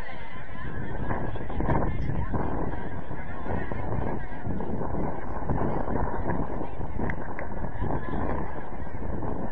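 A crowd of men and women chatter outdoors at a distance.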